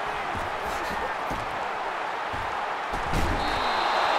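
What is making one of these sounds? Football players collide with thuds.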